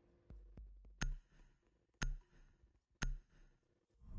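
A game countdown beeps three times in quick, even ticks.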